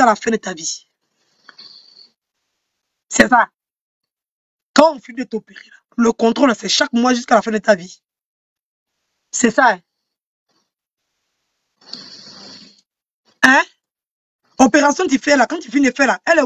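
A young woman talks with animation close to a microphone, in short bursts with pauses.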